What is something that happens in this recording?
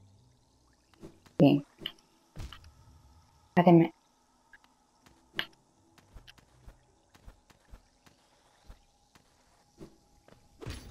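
A small creature's footsteps patter and land with soft thuds.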